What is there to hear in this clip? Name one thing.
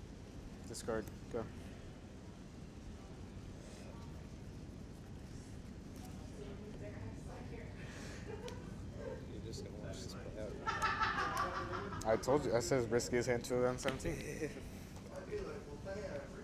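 Playing cards shuffle and riffle softly.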